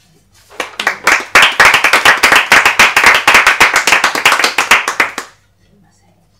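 A small group of women applaud with quick, close claps.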